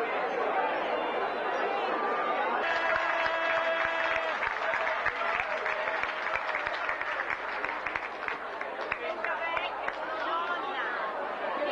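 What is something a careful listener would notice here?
A brass band plays loudly in a large echoing hall.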